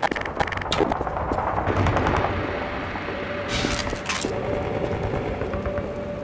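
Flames crackle and roar nearby.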